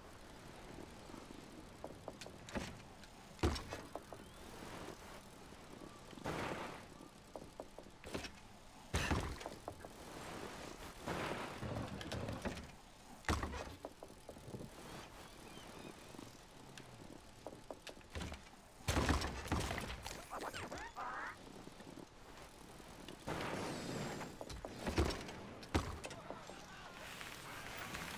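Bicycle tyres roll and crunch over packed dirt.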